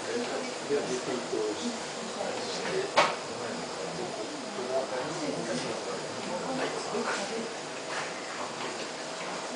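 An elderly man talks calmly through a microphone.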